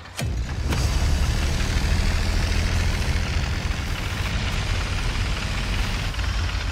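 A tank engine rumbles deeply.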